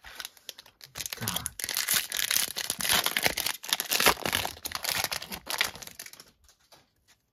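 A plastic card pack wrapper crinkles and rustles as it is torn open.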